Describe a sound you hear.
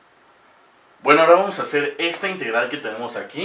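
A man speaks clearly and calmly close by.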